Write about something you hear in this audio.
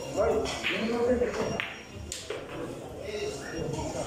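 Billiard balls click sharply together.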